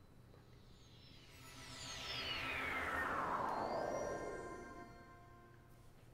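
A shimmering magical chime sweeps down in pitch.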